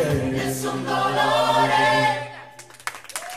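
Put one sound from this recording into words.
A group of young singers sings together through loudspeakers.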